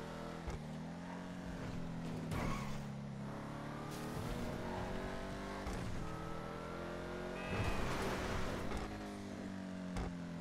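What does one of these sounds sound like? A car engine roars steadily, rising and falling in pitch as the car speeds along.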